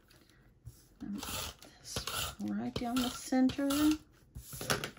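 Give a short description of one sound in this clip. A foam ink blending tool rubs against paper.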